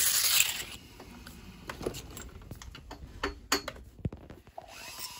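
Small metal parts click and tap as a tool is handled.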